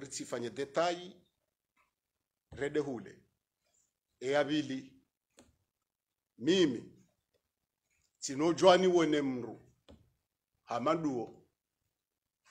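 A middle-aged man speaks firmly into a close microphone, in short phrases with pauses.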